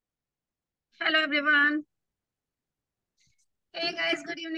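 A young woman speaks cheerfully through an online call.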